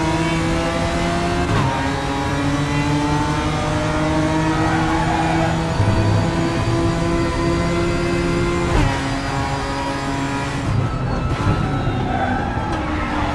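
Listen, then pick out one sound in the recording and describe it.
A racing car engine roars loudly, rising in pitch and dropping sharply at each gear change.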